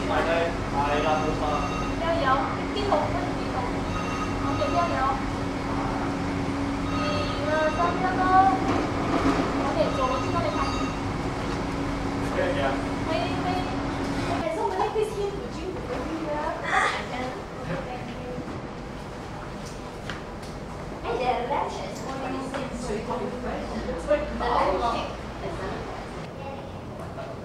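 A crowd of adult guests chatters nearby.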